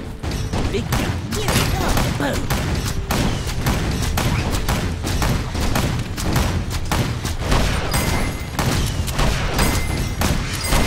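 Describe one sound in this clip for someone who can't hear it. Small weapons clash and strike repeatedly.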